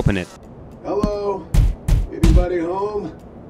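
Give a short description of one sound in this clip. A man knocks on a glass door.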